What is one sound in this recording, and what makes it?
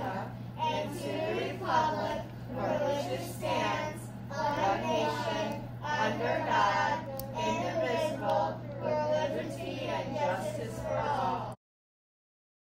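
A group of young children recite together in unison in a room.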